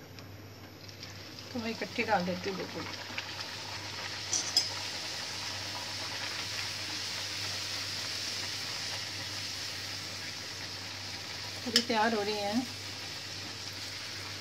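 Batter sizzles loudly in hot oil.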